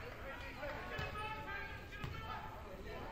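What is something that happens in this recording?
A basketball thumps as it bounces on a hard floor.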